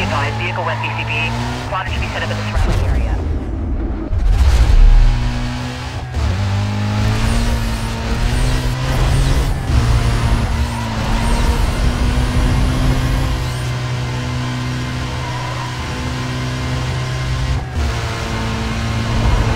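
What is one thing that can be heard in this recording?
A car engine roars and revs up and down as it races.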